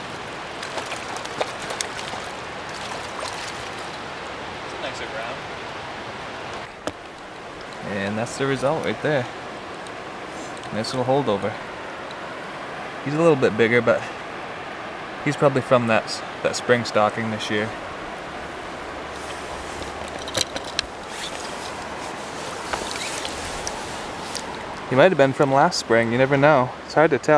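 A river flows steadily.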